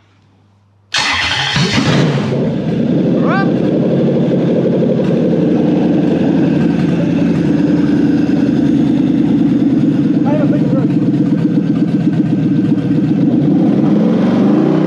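An engine runs with a loud, steady rumble.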